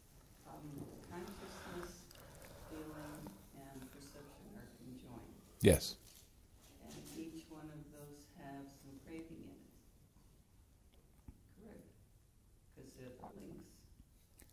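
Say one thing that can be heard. An elderly man speaks calmly and thoughtfully into a close microphone.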